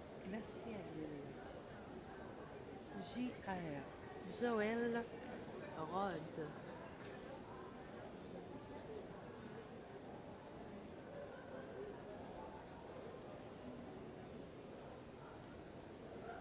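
People murmur in the background of a large indoor hall.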